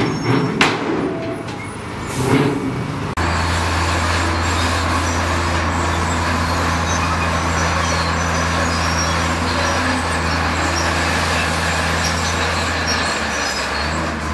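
Rocks grind and scrape under a bulldozer blade.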